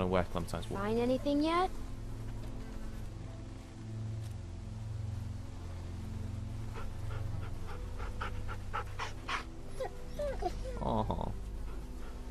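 A dog whines and yelps.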